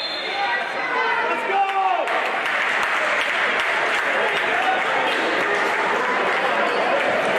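A small crowd chatters and shouts in an echoing hall.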